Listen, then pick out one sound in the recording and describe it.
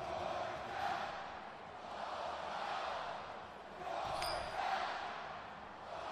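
A large stadium crowd roars steadily, swelling and easing.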